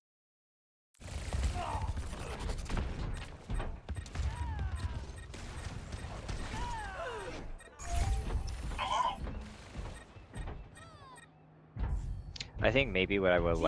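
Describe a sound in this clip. Game weapons fire and abilities crackle in a busy battle.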